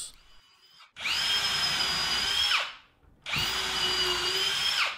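A power drill whirs in short bursts, spinning up and winding down.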